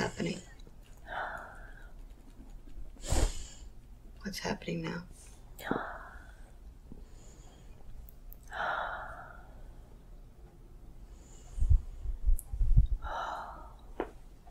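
An elderly woman sighs and breathes out heavily.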